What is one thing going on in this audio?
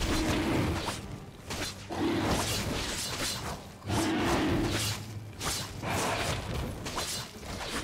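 Fantasy battle sound effects crackle and clash in bursts.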